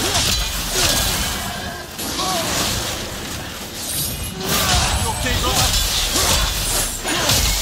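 A creature shrieks in pain.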